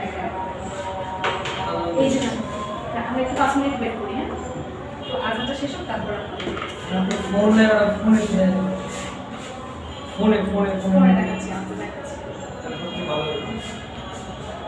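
A young woman speaks calmly, muffled by a face mask.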